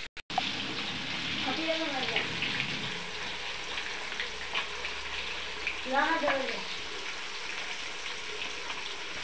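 Oil sizzles and crackles steadily as food fries in a pan.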